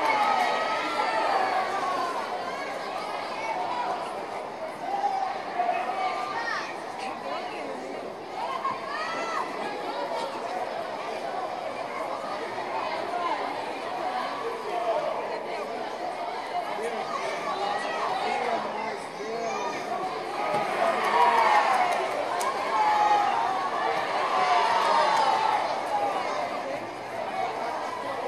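A crowd in a large echoing hall chatters and shouts.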